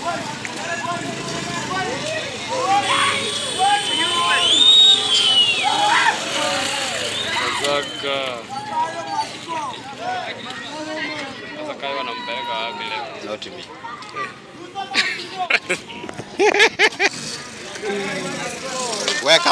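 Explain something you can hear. Men talk and call out outdoors.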